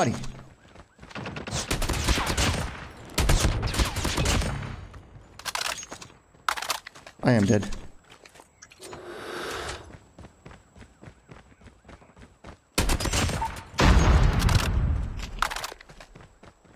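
Rapid gunfire bursts in a video game.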